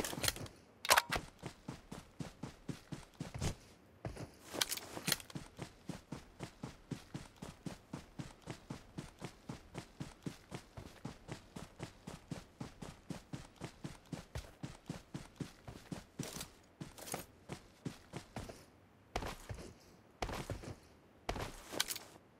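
Quick footsteps thud across grass.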